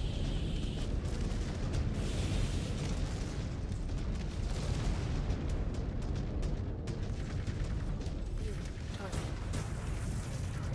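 A heavy machine rumbles and thuds steadily.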